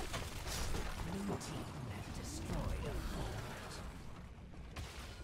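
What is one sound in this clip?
Video game combat effects clash and blast.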